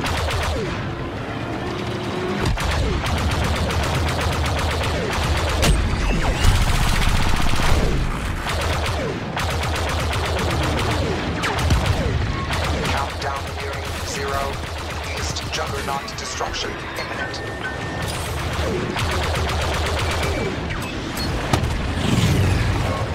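Laser cannons fire in rapid bursts of sharp zaps.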